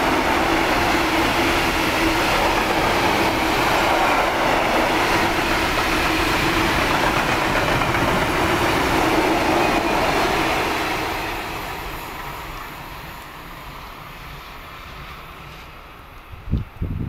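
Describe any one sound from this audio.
A freight train rumbles and clatters past on the rails, then fades into the distance.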